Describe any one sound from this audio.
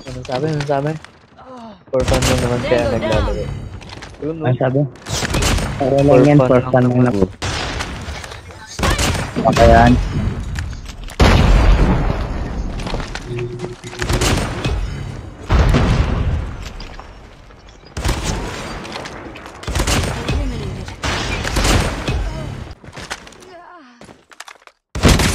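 Sniper rifle shots crack sharply, one at a time.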